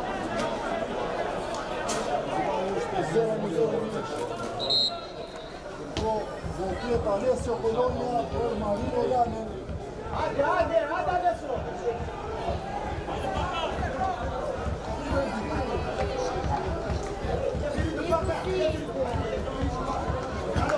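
A crowd of spectators chatters and calls out across an open ground.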